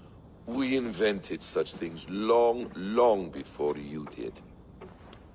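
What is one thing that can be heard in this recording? A man speaks calmly and warmly, close by.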